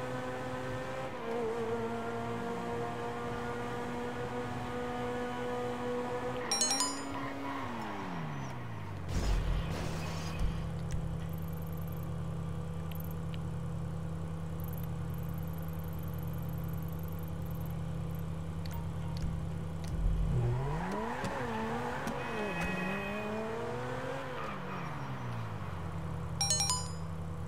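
A sports car engine roars, drops to a steady idle hum, then revs up and down again.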